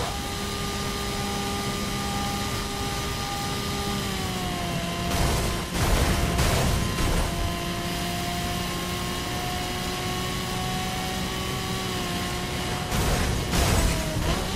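A sports car engine roars steadily at high speed, its pitch dropping and rising.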